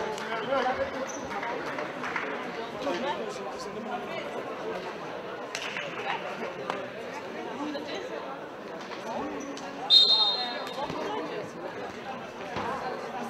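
Spectators chatter nearby in a large echoing hall.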